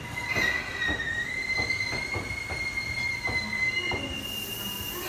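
A train's wheels clack over rail joints as it pulls away.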